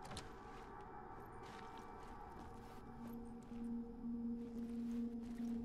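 Footsteps fall on a hard floor at a walking pace.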